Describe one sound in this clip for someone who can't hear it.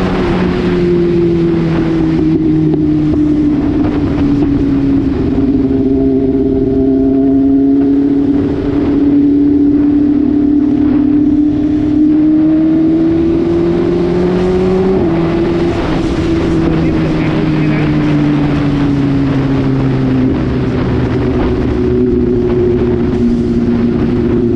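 A motorcycle engine hums steadily at cruising speed, its pitch rising and falling gently.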